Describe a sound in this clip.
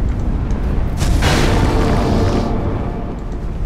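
A magical blast bursts with a loud whoosh.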